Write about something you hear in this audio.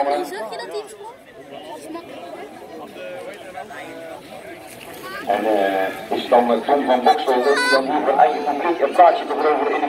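A crowd of spectators shouts and cheers.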